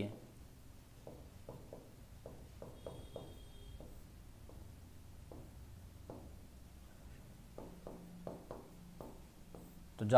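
A marker taps and scratches on a board.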